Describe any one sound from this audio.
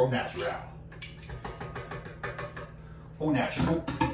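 Dishes clink lightly as a man handles a bowl.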